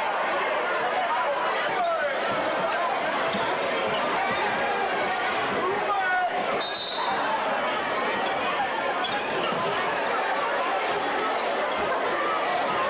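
A large crowd chatters and cheers, echoing in a big hall.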